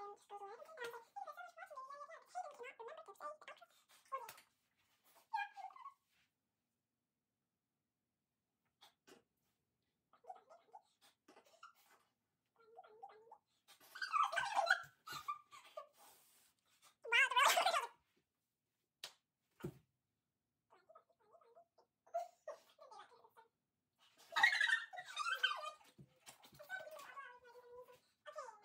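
A girl talks with animation close by.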